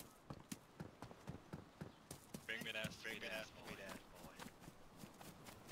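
Footsteps run quickly over hard ground and then grass.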